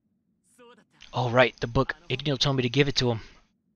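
A young man speaks with animation.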